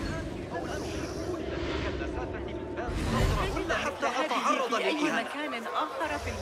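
A crowd of men chatter and murmur nearby.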